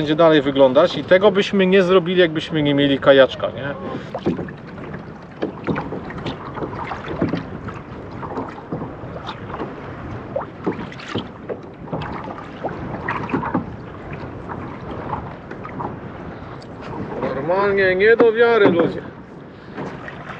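Water laps against a small boat.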